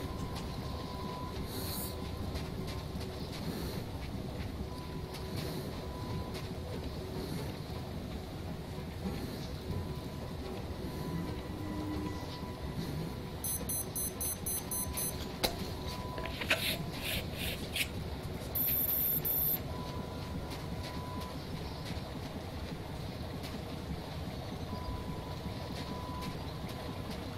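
Rain patters steadily outdoors.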